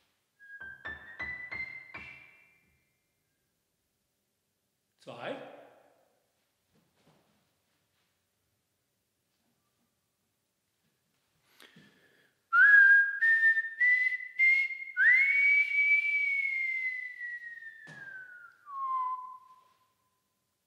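A man whistles high, sliding notes through a microphone.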